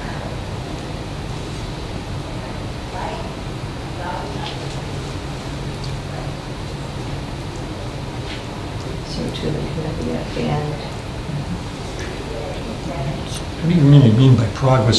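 Adults talk quietly, heard through a distant microphone.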